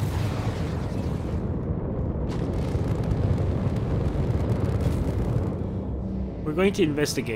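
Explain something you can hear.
A spaceship's engines rumble with a deep, steady roar.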